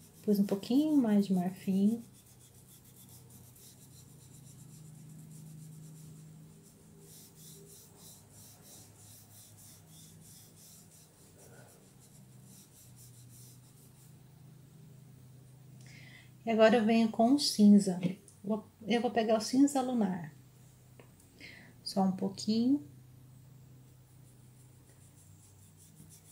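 A brush strokes softly across fabric.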